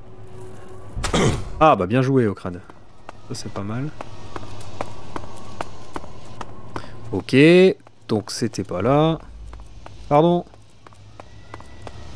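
Armoured footsteps clank on a stone floor.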